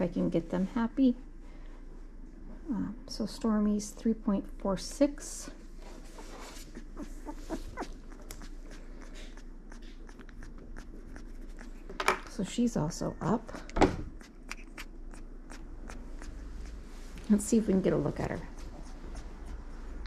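A woman talks calmly close by.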